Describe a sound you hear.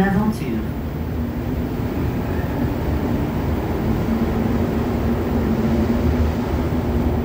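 An electric motor whines as a subway train speeds up.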